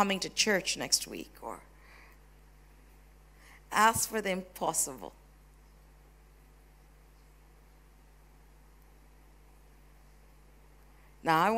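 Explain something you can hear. A woman speaks with animation into a microphone in a large echoing room.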